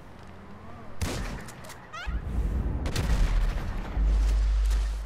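A pistol fires several loud shots nearby.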